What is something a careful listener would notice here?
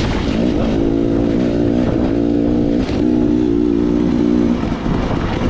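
Tyres crunch over a rough dirt track.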